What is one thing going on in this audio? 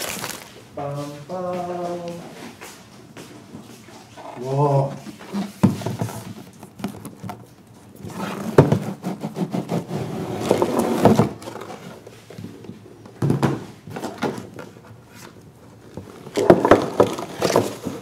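Plastic wrapping crinkles as it is unwrapped.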